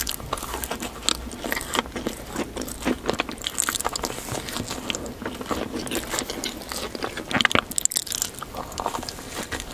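A woman bites into a soft frosted donut close to a microphone.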